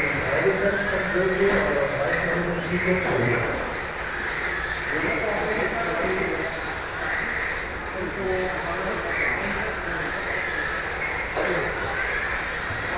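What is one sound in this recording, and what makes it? Electric radio-controlled cars race around an indoor track, their motors whining as they speed up and slow down.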